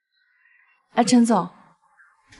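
A young woman talks into a phone.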